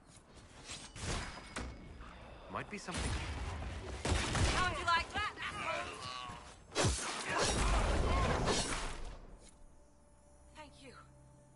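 Magic fire bursts with a roaring whoosh.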